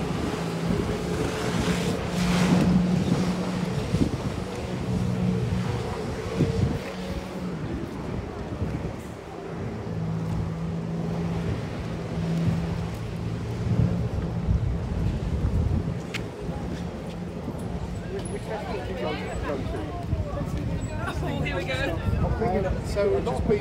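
Wind blows against the microphone.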